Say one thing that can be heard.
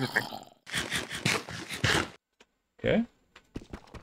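Food is munched and chewed briefly.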